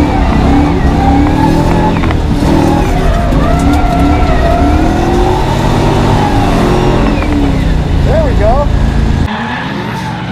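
A car engine roars loudly from inside the cabin, revving up and down.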